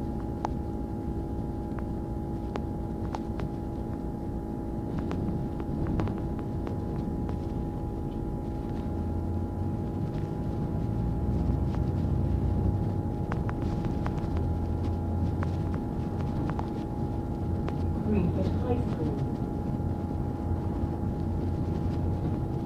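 Traffic rumbles along the road outside.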